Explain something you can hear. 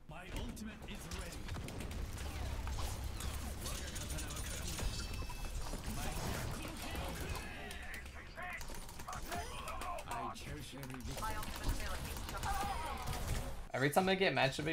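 Video game gunfire and blasts crackle.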